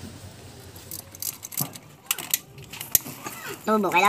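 A wrench clinks against metal engine parts.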